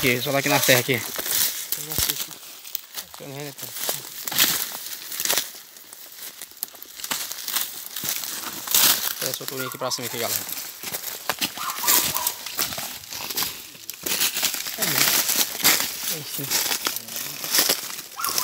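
Footsteps crunch through dry leaves and twigs.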